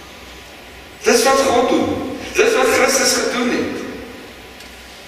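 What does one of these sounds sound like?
An elderly man speaks through a microphone in a large echoing hall.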